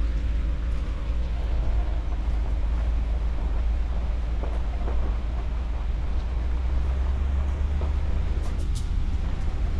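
Wind rumbles steadily and buffets the microphone outdoors.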